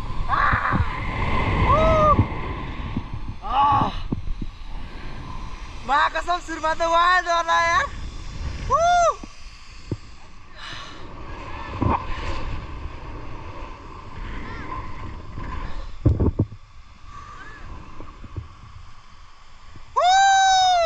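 A young man whoops and shouts with excitement close by.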